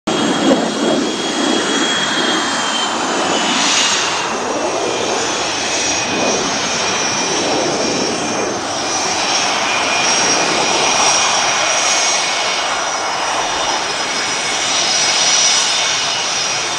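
A jet engine whines loudly and steadily as a fighter jet taxis close by.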